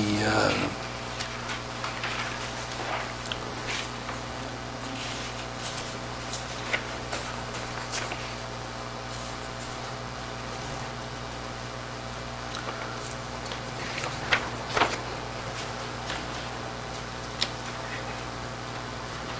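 A man speaks quietly at a distance.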